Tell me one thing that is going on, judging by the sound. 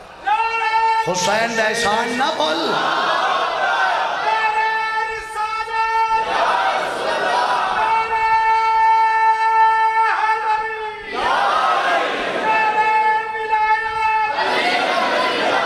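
A man recites loudly and passionately into a microphone, heard through loudspeakers in an echoing room.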